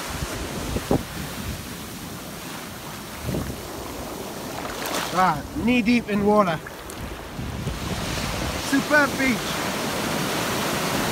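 Waves break and wash over the shore, hissing as they roll in.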